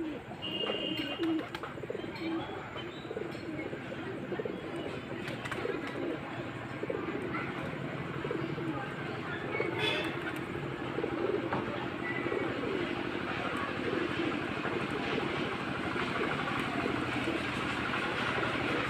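Pigeons coo softly and repeatedly close by.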